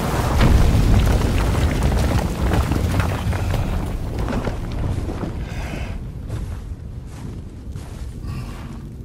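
A waterfall roars nearby, then fades.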